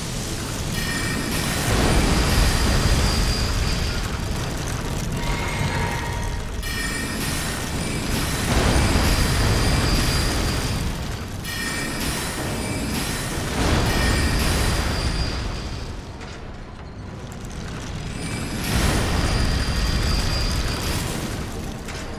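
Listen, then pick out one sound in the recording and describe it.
Magic spells crackle and whoosh in bursts.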